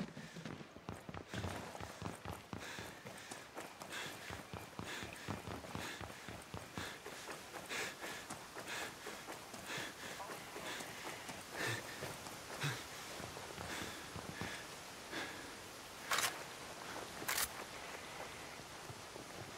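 Footsteps run quickly over wooden boards and grass.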